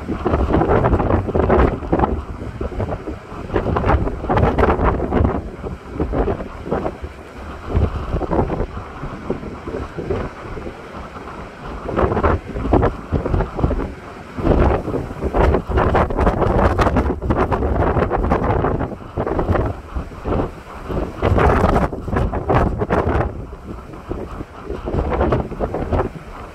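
Strong wind gusts roar across the microphone outdoors.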